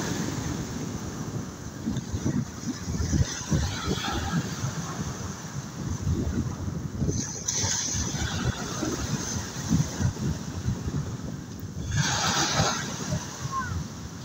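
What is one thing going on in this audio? Waves wash and lap on the open sea.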